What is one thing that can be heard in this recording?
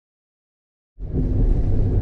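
A car engine hums.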